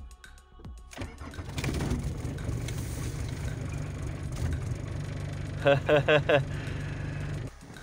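A car engine starts and idles with a steady low rumble.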